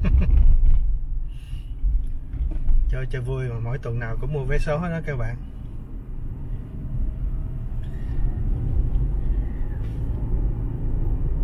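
A car engine hums steadily with road rumble.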